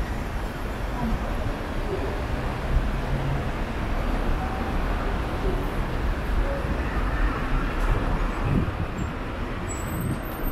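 City traffic rumbles in the distance.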